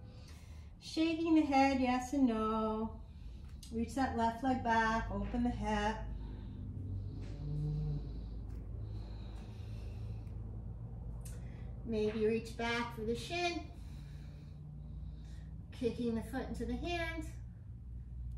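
An older woman speaks calmly and close by, in short bursts with pauses.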